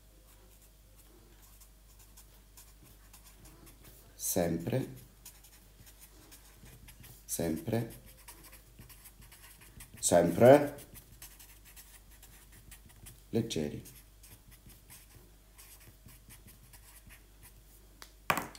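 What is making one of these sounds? A felt-tip marker squeaks softly across paper.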